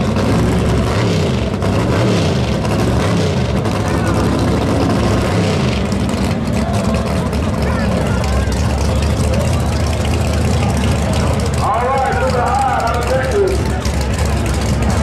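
A car engine revs hard and roars loudly, with a rough rumbling exhaust.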